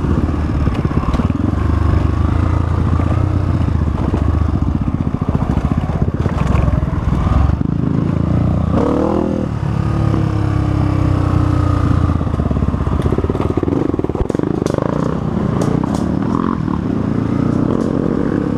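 A dirt bike engine revs and putters close by.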